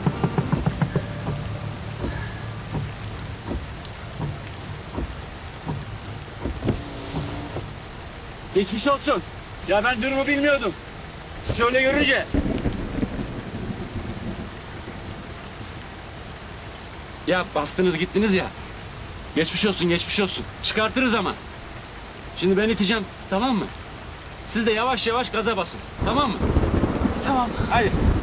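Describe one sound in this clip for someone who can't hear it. Heavy rain patters steadily on a car.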